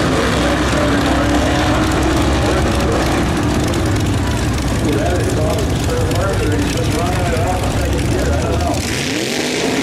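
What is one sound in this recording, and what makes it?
Two race car engines roar as the cars speed away.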